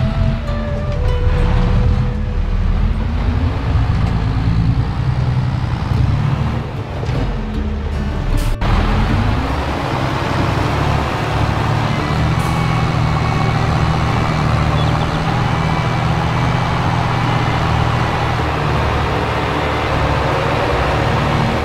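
Large dice thud and tumble against a tractor.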